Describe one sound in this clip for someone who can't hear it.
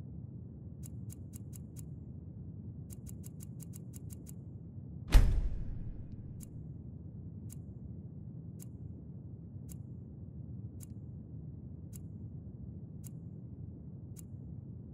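A menu makes soft, quick ticking clicks.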